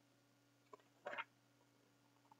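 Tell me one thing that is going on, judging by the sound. A book's page rustles as it is turned.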